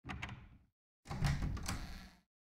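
A heavy wooden door creaks and thuds.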